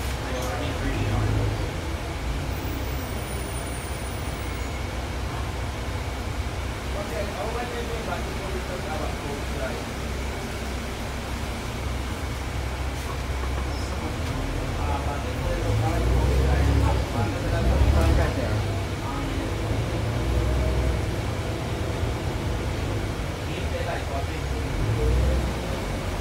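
A bus rattles and creaks as it rolls along.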